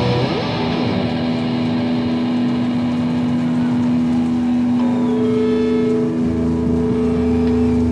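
A band plays amplified music loudly in a large hall.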